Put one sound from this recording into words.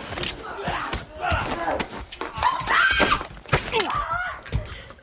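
A woman screams and shouts in panic.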